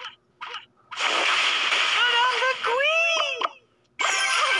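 A magic spell lands with a shimmering, whooshing burst.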